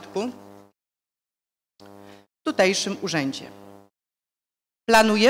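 A woman speaks calmly into a microphone in short bursts.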